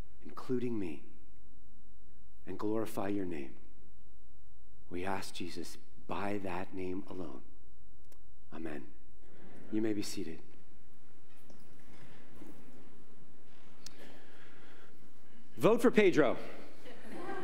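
A man speaks to an audience in an echoing hall, pausing between phrases.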